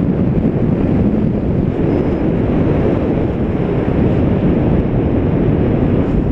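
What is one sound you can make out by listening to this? Strong wind rushes and buffets loudly past the microphone.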